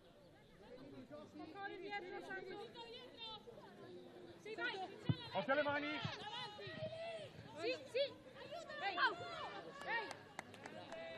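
Young women shout to each other across an outdoor pitch.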